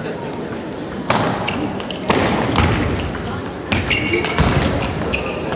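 A table tennis ball knocks sharply back and forth off paddles and a table.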